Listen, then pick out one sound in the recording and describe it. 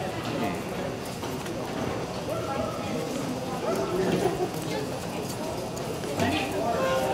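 Men talk casually nearby in a large echoing hall.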